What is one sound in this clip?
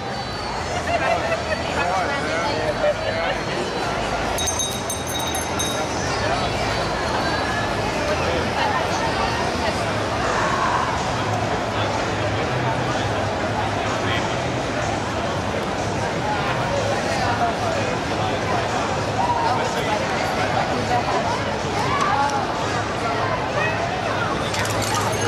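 A crowd of young men and women chatters and calls out nearby, outdoors.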